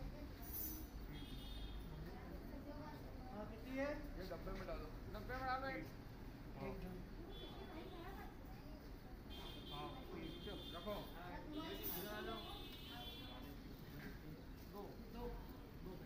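Men and women talk quietly nearby.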